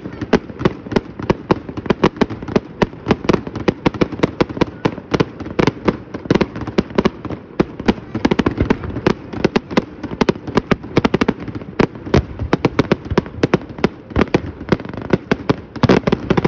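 Firework shells crackle and pop.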